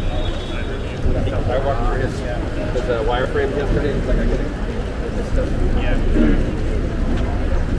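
Nearby men talk casually as they walk past.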